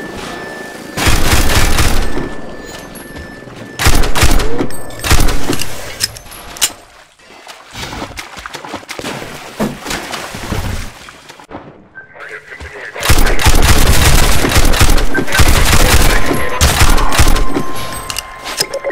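A pistol fires a series of loud, sharp shots that echo off nearby walls.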